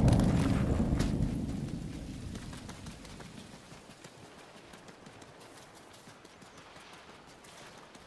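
Rain patters down steadily.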